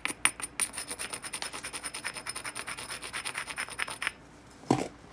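A stone rapidly scrapes along the edge of a glassy rock.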